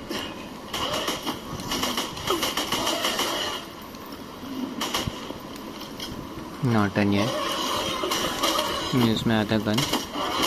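Rapid gunfire from a video game plays through small speakers.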